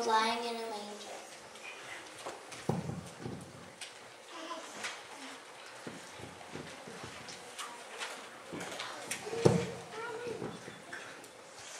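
Children shuffle and move about.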